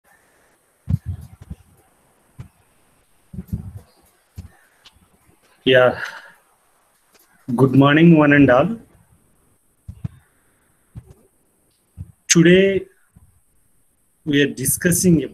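A young man speaks with pauses over an online call.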